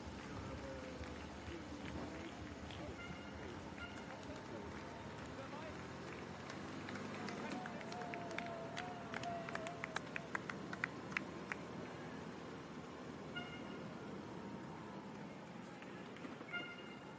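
Many runners' shoes patter quickly on the road outdoors.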